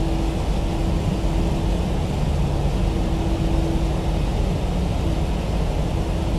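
Jet engines rumble and hum steadily.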